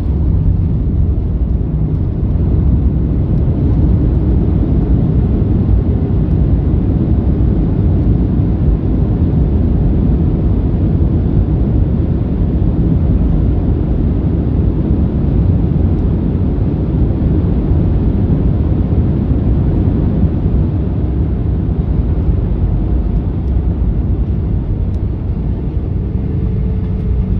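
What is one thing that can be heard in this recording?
An airliner's wheels rumble over the runway.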